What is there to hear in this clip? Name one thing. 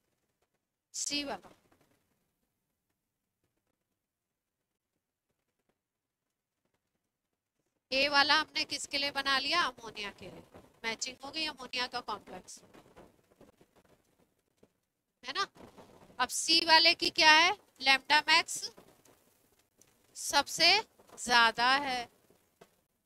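A woman explains calmly into a headset microphone, with pauses.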